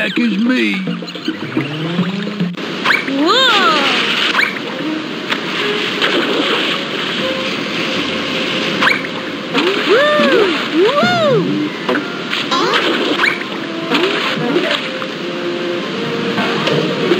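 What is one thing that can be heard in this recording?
Rushing water roars steadily down rapids.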